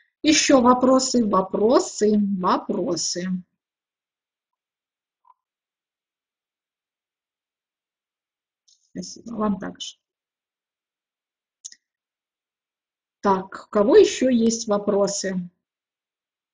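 An elderly woman speaks calmly over an online call, with pauses.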